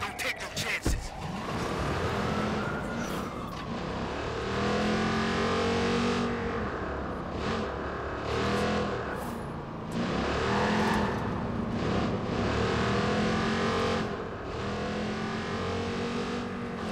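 A car engine revs loudly as the car drives off.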